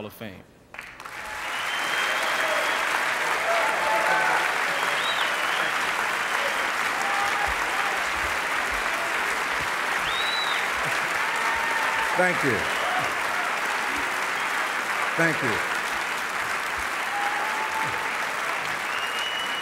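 A large audience applauds and cheers in an echoing hall.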